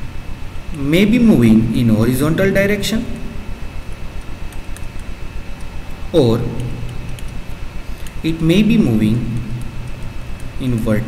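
A young man speaks calmly into a nearby microphone, in short bursts with pauses.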